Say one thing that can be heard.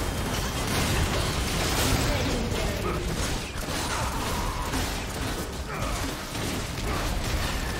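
Magic blasts and weapon hits crackle in a video game battle.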